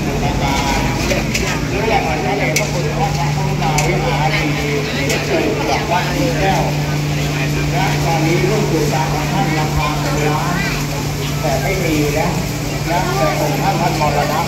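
A crowd of people chatters all around, outdoors.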